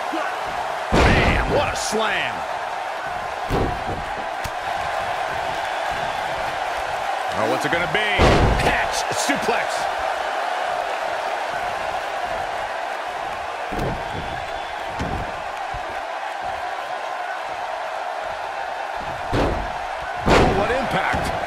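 Heavy bodies slam onto a wrestling ring mat with loud thuds.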